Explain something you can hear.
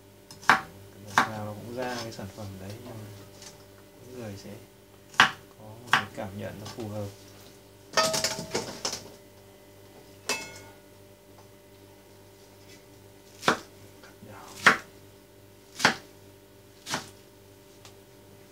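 A knife chops vegetables on a wooden board with sharp knocks.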